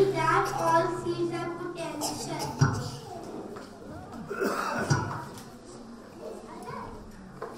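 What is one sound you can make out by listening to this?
A young boy speaks loudly into a microphone, heard through loudspeakers.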